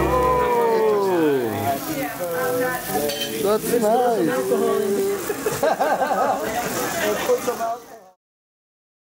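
A sparkler fizzes and crackles steadily.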